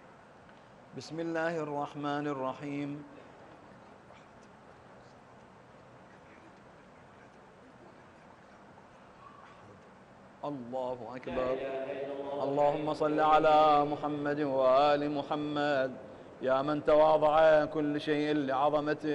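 An elderly man chants a prayer aloud through a microphone in a large echoing hall.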